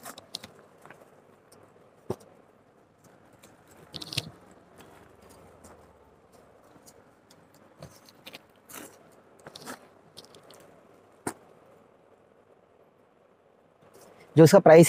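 Fabric and paper packets rustle and crinkle as they are handled.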